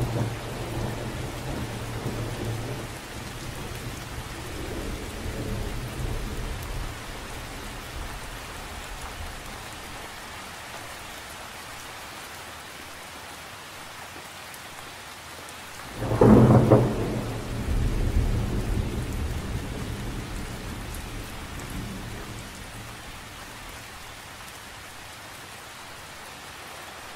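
Wind gusts and rumbles.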